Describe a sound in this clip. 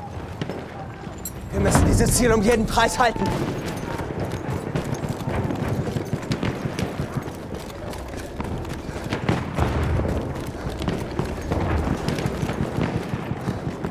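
Footsteps run quickly over rubble and gravel.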